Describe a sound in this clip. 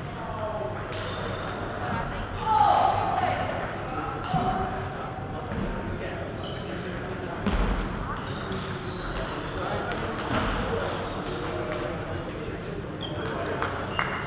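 Voices of several people murmur and talk in a large echoing hall.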